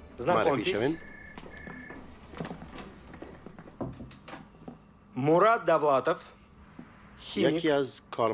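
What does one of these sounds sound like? An elderly man speaks clearly and with animation, close by.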